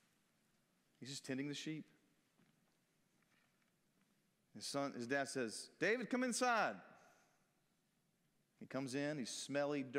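A man speaks calmly into a microphone in a large echoing room, with pauses.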